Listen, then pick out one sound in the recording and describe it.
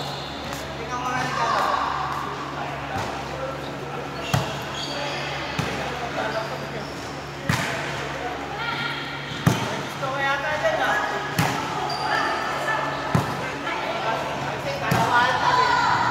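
Young women call out and shout to each other.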